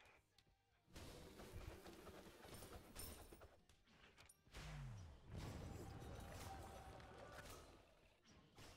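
Weapons clash and magic effects crackle in a fight.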